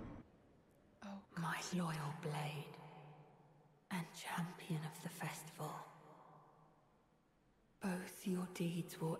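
A young woman speaks calmly and close into a microphone.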